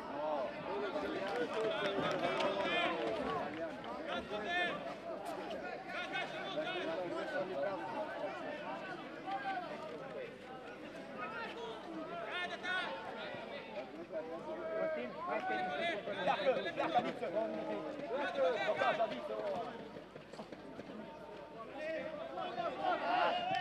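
A crowd chatters and chants in an open stadium.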